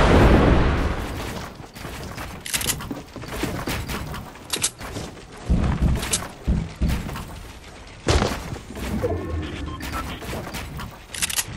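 Wooden walls and ramps clack into place one after another.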